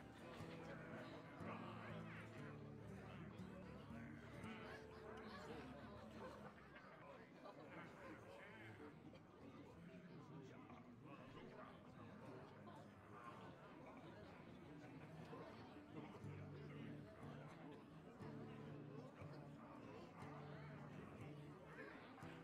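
Calm game music plays with steady held notes.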